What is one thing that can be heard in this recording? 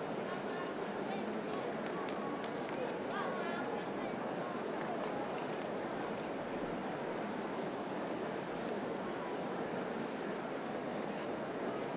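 A crowd murmurs and chatters outdoors all around.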